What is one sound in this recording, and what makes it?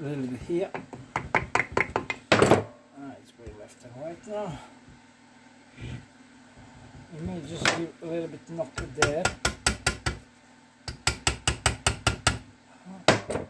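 A hammer taps repeatedly on a metal part.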